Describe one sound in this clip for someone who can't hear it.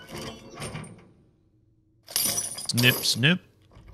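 Bolt cutters snap through a metal chain.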